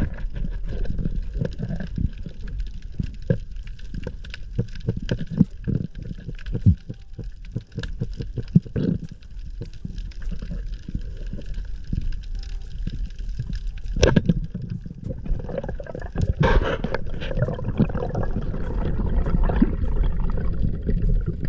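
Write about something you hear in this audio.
Underwater bubbles and water rush around the listener, muffled and low.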